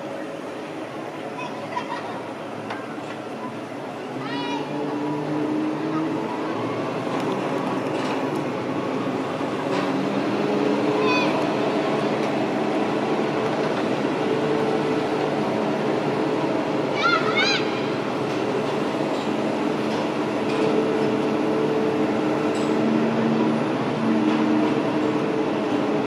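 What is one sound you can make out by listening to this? A rough-terrain crane's diesel engine runs with a low, steady drone.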